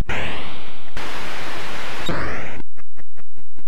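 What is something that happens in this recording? A retro video game explosion hisses loudly.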